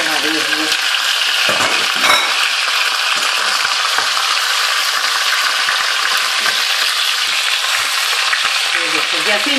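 Meat sizzles and crackles in a hot pot.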